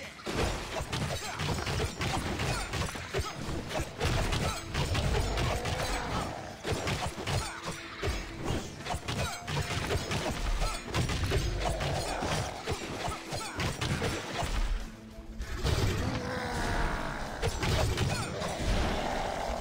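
Rapid hits and blasts of a game fight ring out.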